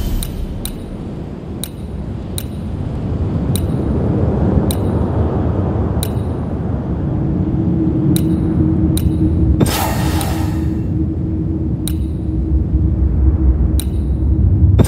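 Soft menu clicks tick as a cursor moves between options.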